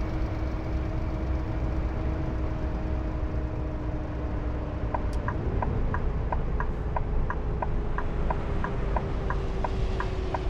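A bus engine rumbles steadily, its pitch shifting slightly midway.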